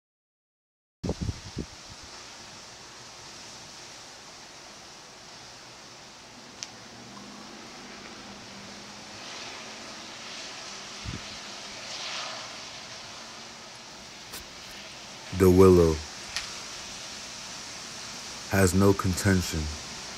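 Strong wind gusts and rushes through a tree's leaves outdoors.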